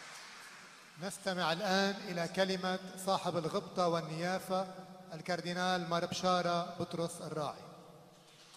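A man chants through a microphone in a large echoing hall.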